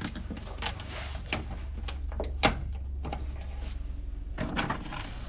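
A utility knife clicks and scrapes.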